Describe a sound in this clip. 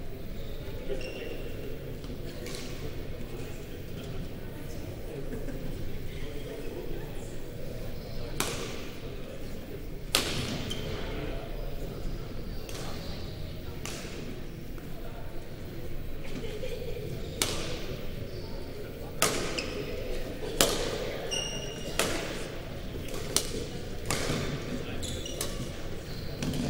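Shoes squeak sharply on the court floor.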